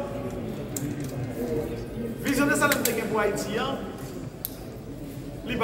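A middle-aged man speaks with animation into microphones.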